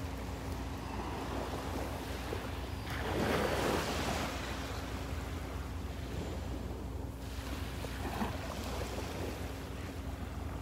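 Small waves lap gently on a shore outdoors.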